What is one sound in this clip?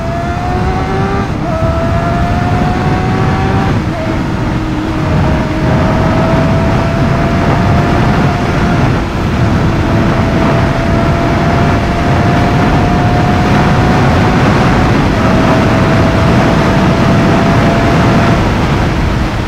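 A motorcycle engine whines loudly at high speed, its pitch rising slowly between gear shifts.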